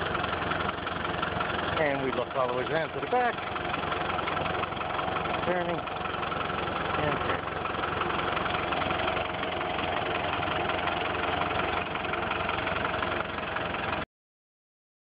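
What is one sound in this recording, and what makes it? An engine runs steadily close by.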